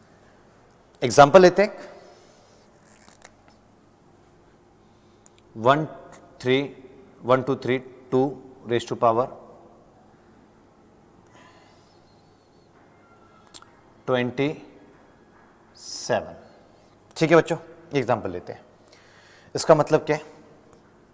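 A man speaks calmly and clearly in short bursts, as if teaching.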